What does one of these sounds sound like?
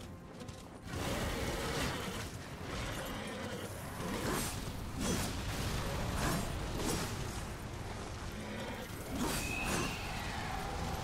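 Game combat sounds clash and crackle with magic blasts.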